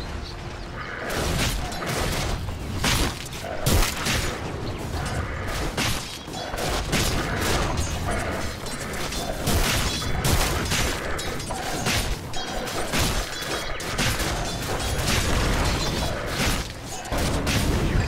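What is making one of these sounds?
Weapons clash and strike rapidly in a fantasy battle.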